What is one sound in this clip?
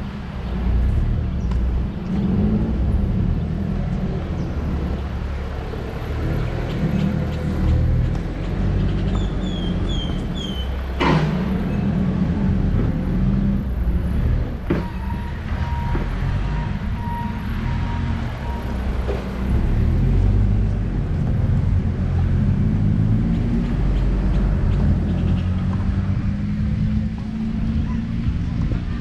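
Wind rumbles and buffets outdoors throughout.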